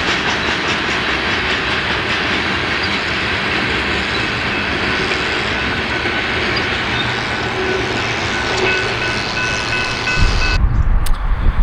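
A freight train rumbles and clatters past on the rails.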